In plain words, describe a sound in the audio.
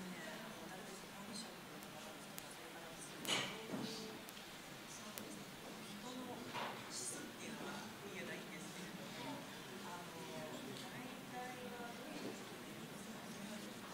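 A woman speaks calmly at a distance in an echoing room.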